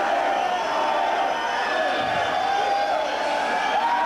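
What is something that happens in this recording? An electric guitar plays loudly through speakers in a large hall.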